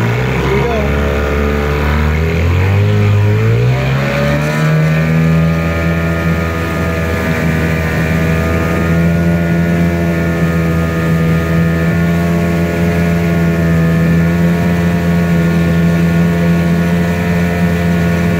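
A small outboard motor drones loudly, revving up and then running steadily at high speed.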